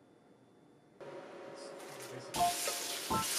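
Asparagus spears drop into a pot of water.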